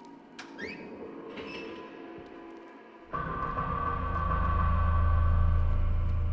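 Footsteps shuffle slowly across a gritty floor.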